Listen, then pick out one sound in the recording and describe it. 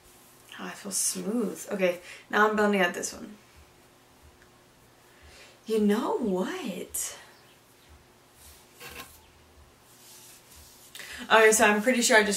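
A young woman talks calmly, close to a microphone.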